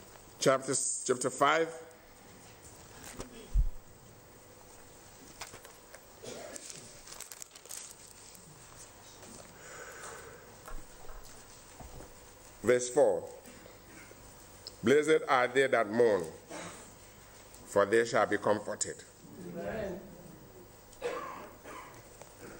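A middle-aged man speaks slowly and solemnly into a microphone, pausing between phrases.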